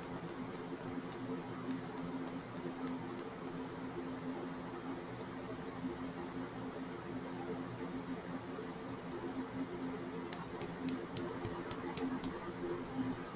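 A thin plastic bag crinkles and ticks in quick short clicks close by.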